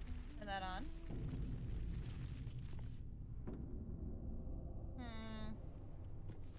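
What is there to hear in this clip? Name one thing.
A young woman speaks briefly into a headset microphone.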